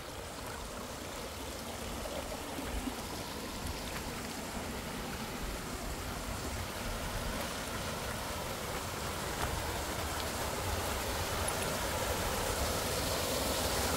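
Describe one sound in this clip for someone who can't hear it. A small waterfall splashes, growing louder.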